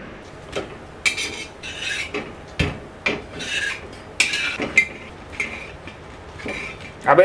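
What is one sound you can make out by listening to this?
A metal spatula scrapes and taps on a pan.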